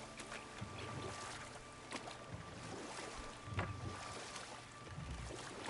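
Water laps and splashes as a wooden boat glides along.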